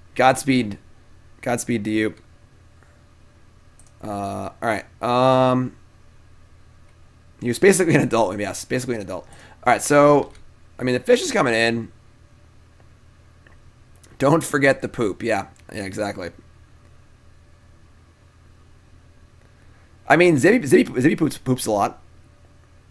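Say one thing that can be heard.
A young man talks with animation into a close microphone, in short bursts with pauses.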